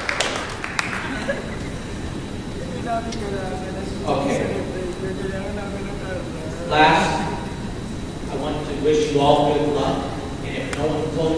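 A man speaks with animation into a microphone over a loudspeaker.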